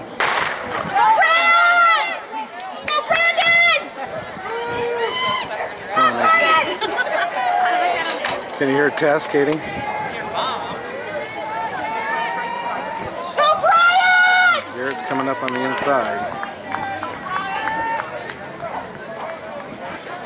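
Young spectators shout and cheer loudly outdoors.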